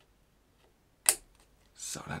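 A cable plug clicks into a microphone.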